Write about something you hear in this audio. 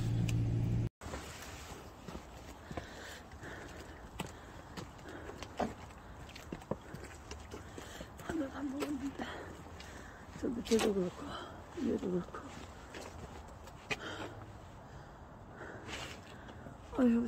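Footsteps scuff along a paved path outdoors.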